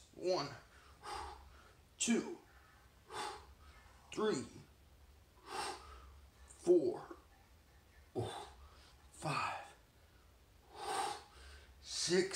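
A middle-aged man breathes out hard close by.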